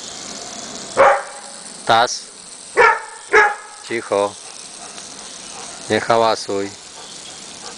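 A dog barks several times close by.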